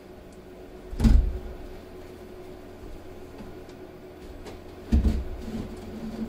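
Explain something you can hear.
A cement board knocks against a wall frame.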